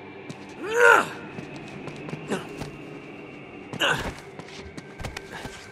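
Feet thud on wooden planks.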